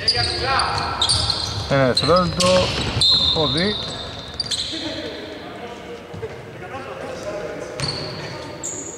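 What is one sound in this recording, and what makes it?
A basketball thumps as it bounces on a wooden floor.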